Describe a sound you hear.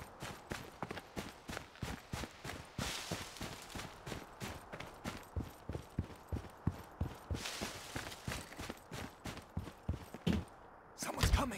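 Footsteps thud quickly on grass and ground.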